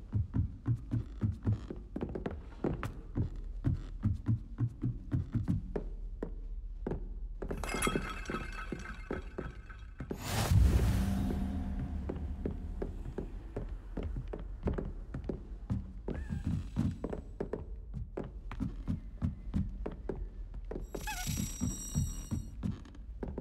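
Footsteps thud on wooden stairs and floors.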